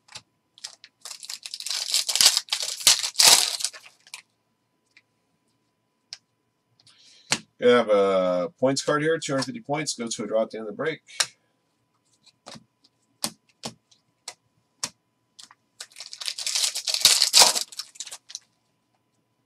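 A foil wrapper crinkles as hands tear open a pack.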